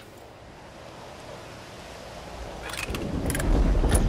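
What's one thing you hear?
A metal valve wheel creaks as it turns.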